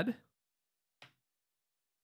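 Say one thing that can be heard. Coins clink softly against each other.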